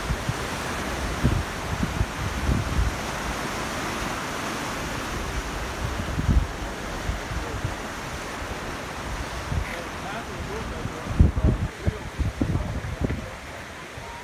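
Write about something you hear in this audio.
Surf breaks and washes against rocks in the distance.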